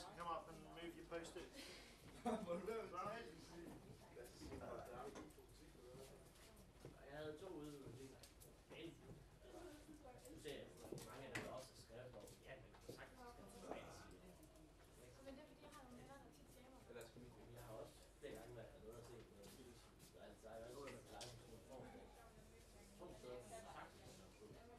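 Several young men and women chatter and laugh nearby.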